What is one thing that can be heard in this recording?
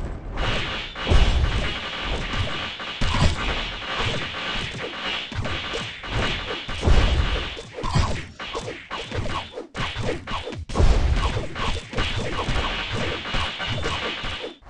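Booming game explosions hit over and over.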